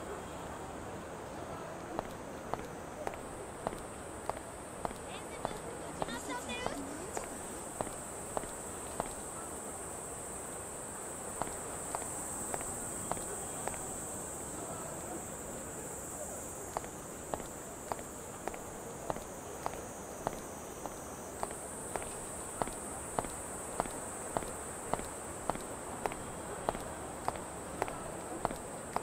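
Footsteps tap steadily on hard paving.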